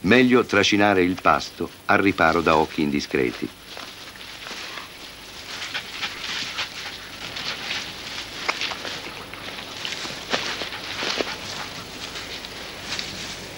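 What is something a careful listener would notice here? Wolves tear and chew at a carcass in rustling grass.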